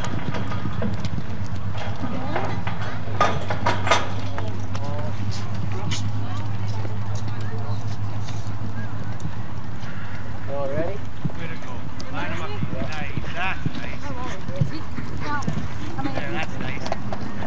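A horse gallops on soft dirt with muffled hoofbeats.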